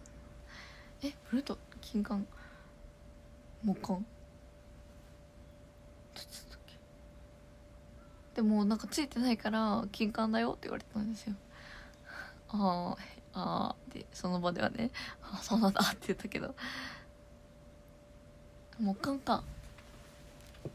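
A young woman talks casually and animatedly close to a phone microphone.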